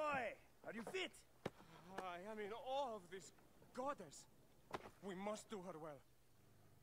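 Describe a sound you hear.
A young man speaks eagerly.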